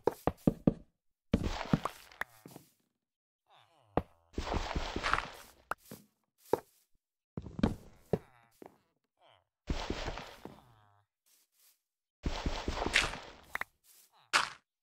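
Dirt crunches in short bursts as blocks are dug out.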